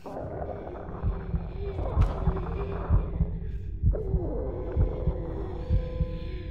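Small footsteps thud softly on a wooden floor.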